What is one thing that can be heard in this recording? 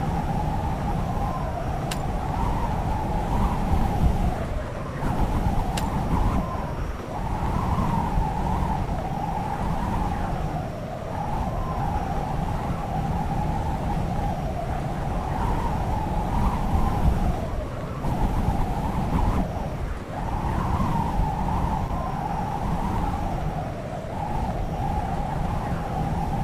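Wind rushes steadily past during a parachute glide.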